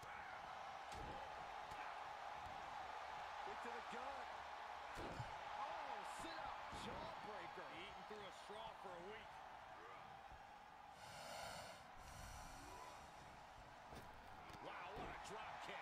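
Wrestlers' bodies thud onto a ring mat.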